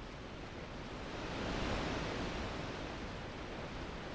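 Sea waves wash against a ship's hull.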